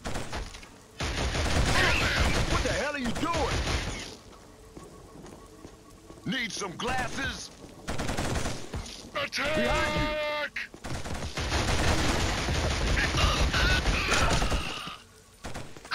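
Automatic gunfire rattles in loud bursts.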